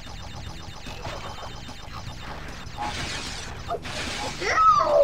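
Upbeat video game music plays.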